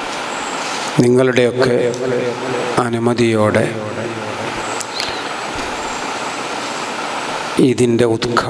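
A man speaks loudly and with emphasis through a microphone and loudspeakers in an echoing room.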